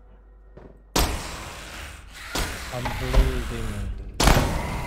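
Gunshots fire loudly, one at a time.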